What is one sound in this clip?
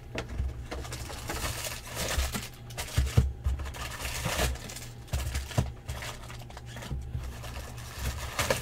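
A cardboard box flap rustles and scrapes as it is torn open.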